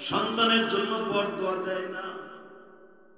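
A man speaks forcefully into a microphone over loudspeakers, then fades away.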